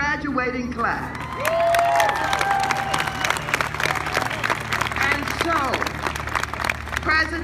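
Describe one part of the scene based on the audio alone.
A crowd claps and applauds steadily.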